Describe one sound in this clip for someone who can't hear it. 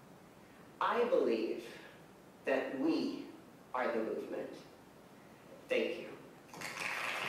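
A woman speaks with emphasis through a microphone.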